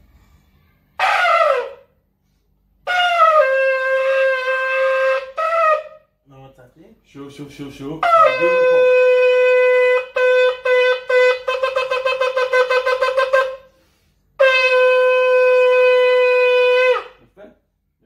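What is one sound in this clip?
A ram's horn blows loud, blaring blasts, some long and steady, some broken into short bursts.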